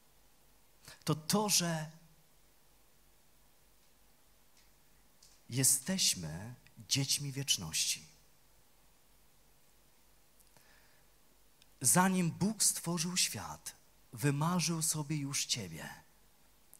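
A middle-aged man speaks with animation through a microphone and loudspeakers, pausing between phrases.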